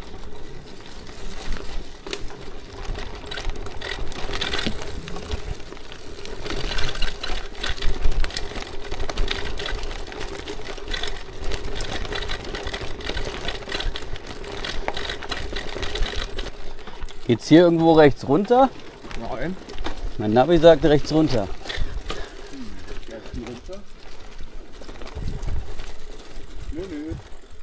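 Bicycle tyres crunch and rattle over a bumpy dirt track.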